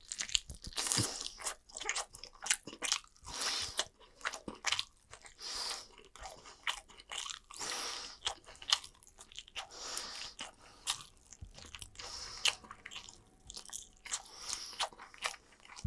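Crispy food crackles and crunches very close by as it is torn apart.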